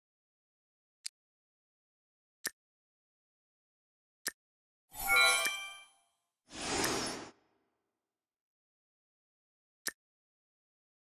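Game menu clicks sound in short taps.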